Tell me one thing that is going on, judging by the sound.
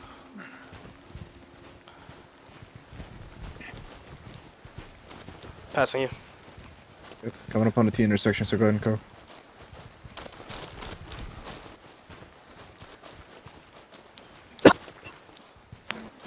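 Footsteps crunch softly on the ground.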